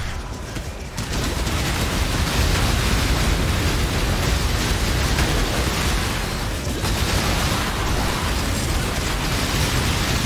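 Game magic blasts crackle and boom in a fight.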